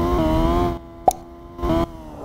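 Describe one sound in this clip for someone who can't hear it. A race car crashes with a loud bang.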